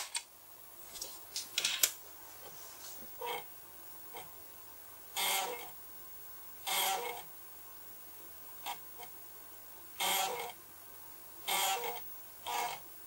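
A floppy disk drive whirs and clicks in short, repeated bursts.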